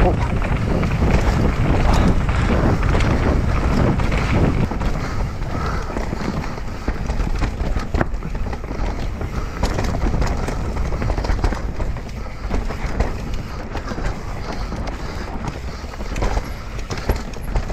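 A bike's frame and chain clatter over bumps.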